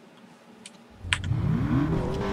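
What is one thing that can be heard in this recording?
A car engine revs up as the car pulls away.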